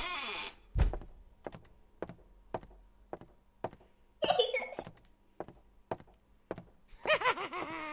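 Footsteps tap steadily across a floor.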